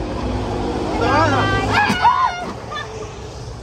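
Young women scream in fright close by.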